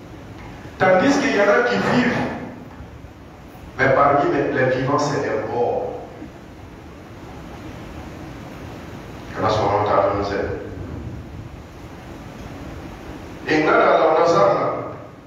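A man preaches loudly and with emphasis through a microphone, in bursts with pauses, in an echoing hall.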